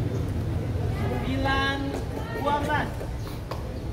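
A young man shouts a call on an outdoor court.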